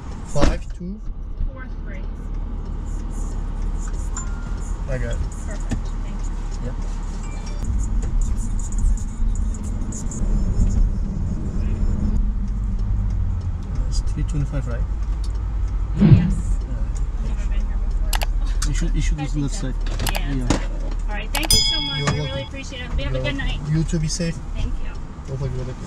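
A car engine hums low and steady while driving.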